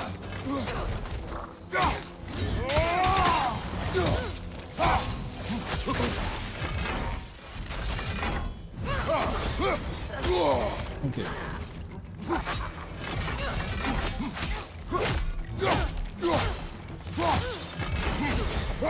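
Weapons clash and strike in a fight, with sharp metallic hits.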